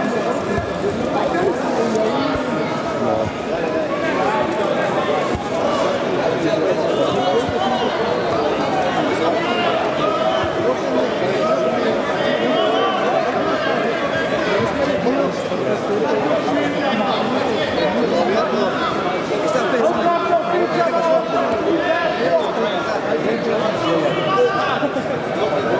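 A crowd of men chatters and shouts in a large echoing hall.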